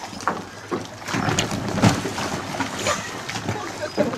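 Water splashes as a girl slides off an inflatable into a lake.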